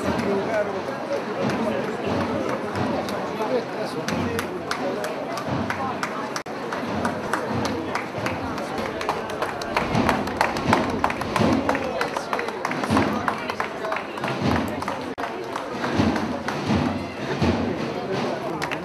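Many footsteps march on a wet street.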